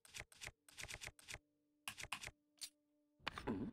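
Short clicks tick quickly one after another.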